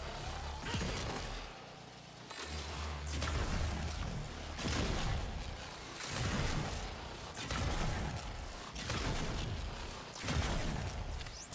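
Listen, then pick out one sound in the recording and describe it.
Fiery explosions burst again and again with heavy booms.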